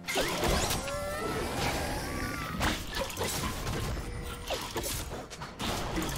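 Magic spells whoosh and crackle in a fast, busy fight.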